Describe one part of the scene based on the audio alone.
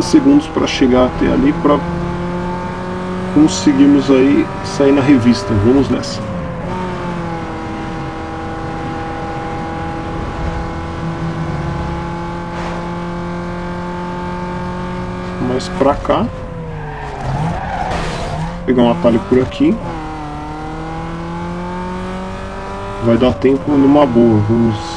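A car engine roars steadily at high speed, dropping in pitch at each gear change.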